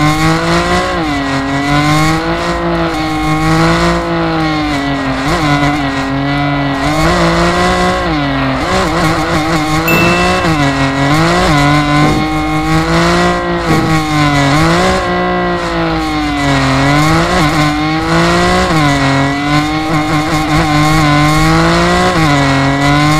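Tyres screech as a car slides sideways.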